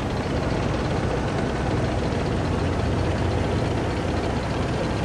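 A tank engine rumbles steadily as the tank drives forward.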